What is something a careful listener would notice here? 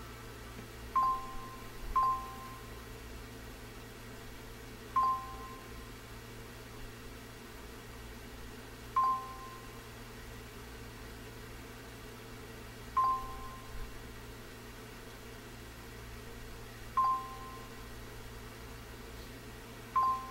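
A quiz game timer beeps at a slow, steady pace.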